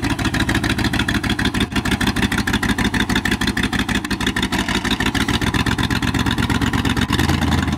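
A loud truck engine rumbles and chugs rapidly.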